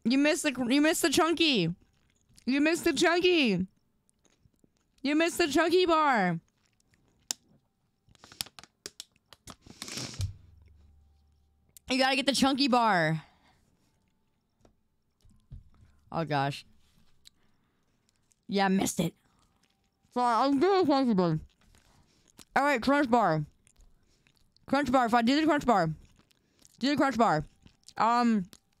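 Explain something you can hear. A young woman speaks animatedly into a microphone, in short bursts with pauses.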